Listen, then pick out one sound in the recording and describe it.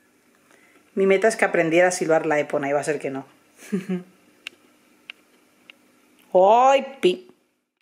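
A woman talks to a bird in a soft, playful voice up close.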